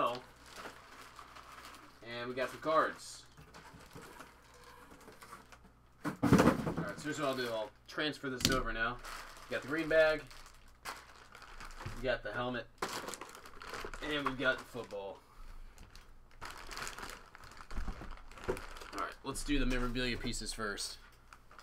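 Plastic bags rustle and crinkle as hands handle them.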